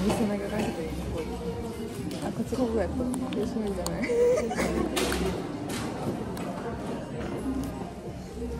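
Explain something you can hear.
Cardboard packaging rustles and taps in hands.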